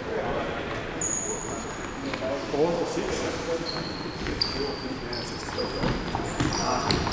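Sneakers squeak sharply on a hard indoor floor.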